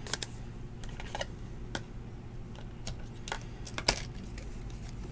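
Plastic card sleeves crinkle and rustle as hands handle a trading card.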